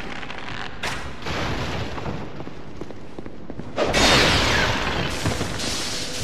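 Armored footsteps run across a stone floor.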